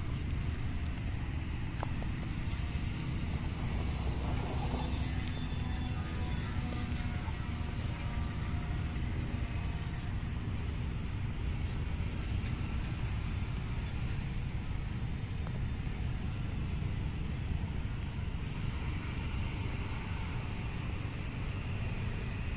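A radio-controlled model airplane's propeller buzzes as it takes off and flies overhead.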